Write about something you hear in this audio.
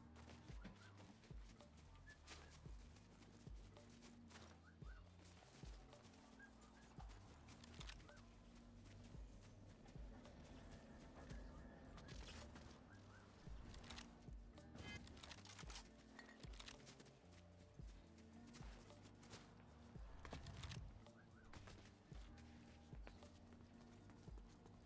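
Footsteps crunch on snow as a game character runs.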